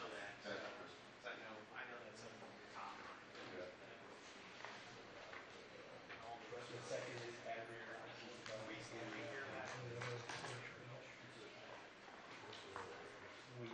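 A man speaks calmly at a short distance, in a room with a slight echo.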